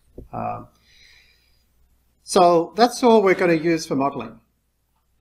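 A young man speaks calmly and closely into a microphone.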